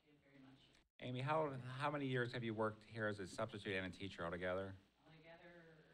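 A middle-aged man speaks clearly into a microphone.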